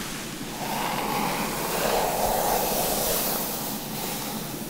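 A bristle brush swishes through long hair.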